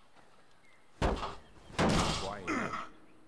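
A wooden plank bangs hard against a door.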